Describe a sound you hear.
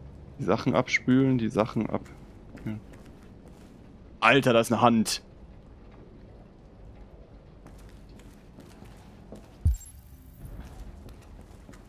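Footsteps tread slowly on a hard floor.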